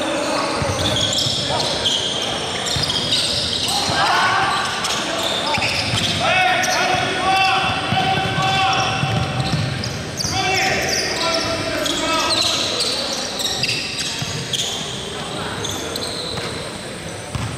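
A basketball bounces on the floor, echoing in a large hall.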